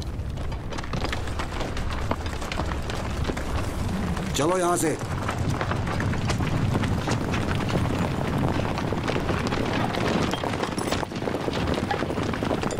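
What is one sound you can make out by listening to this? Horses' hooves pound on hard ground at a gallop.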